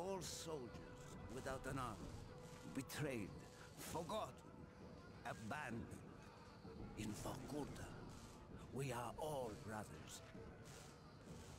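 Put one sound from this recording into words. A man speaks in a low, gravelly voice with intensity.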